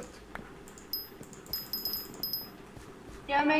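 A short game chime rings several times in quick succession.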